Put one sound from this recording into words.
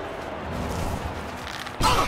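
A frost spell crackles and hisses.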